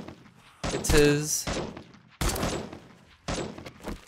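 A rifle fires single shots.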